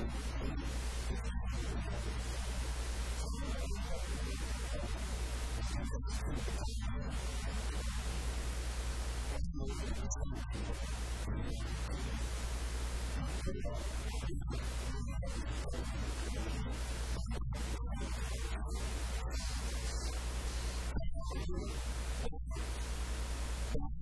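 A middle-aged man speaks with animation into a microphone, heard through loudspeakers in an echoing room.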